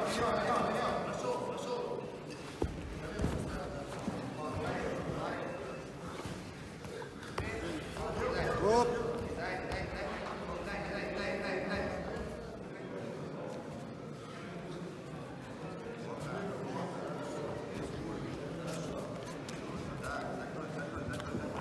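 A crowd talks and cheers in a large echoing hall.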